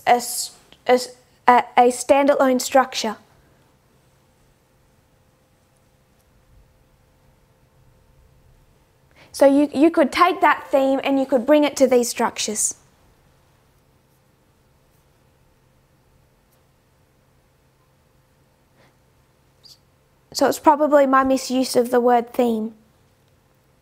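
A woman speaks calmly and clearly into a close microphone, in short bursts with long pauses.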